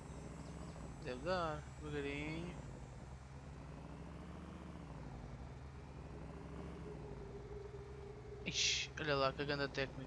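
A young man speaks briefly and calmly through a microphone.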